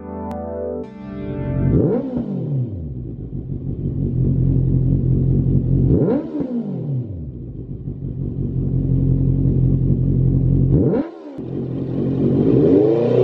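A motorcycle engine idles with a deep, loud rumble close by.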